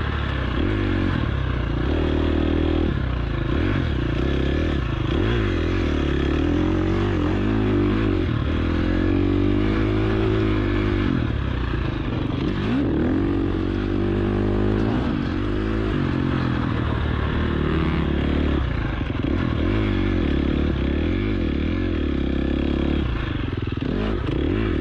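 A dirt bike engine revs up and down loudly, close by.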